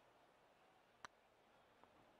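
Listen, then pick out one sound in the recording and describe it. A golf club strikes a ball with a short, crisp click.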